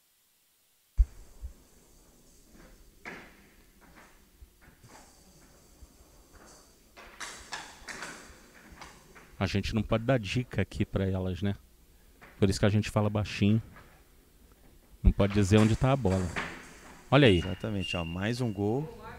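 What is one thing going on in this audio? Bats strike a ball with sharp knocks.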